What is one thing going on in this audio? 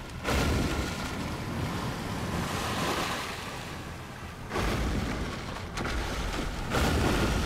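Water rushes and splashes as a rider skims across it.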